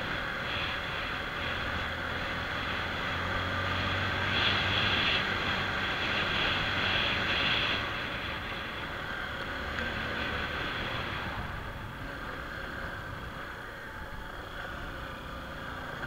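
A motorcycle engine hums steadily up close as it rides along.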